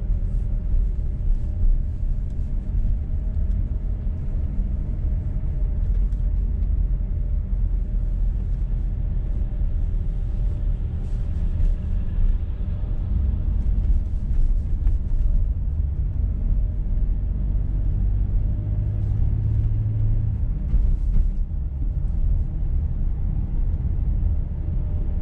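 A car engine hums steadily from inside the car while it drives.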